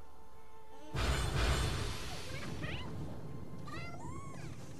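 A bright magical burst whooshes and shimmers.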